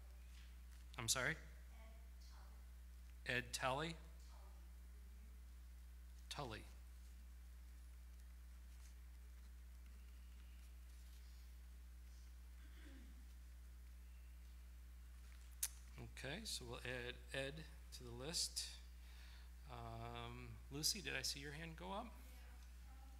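A middle-aged man speaks slowly and calmly into a microphone, with long pauses.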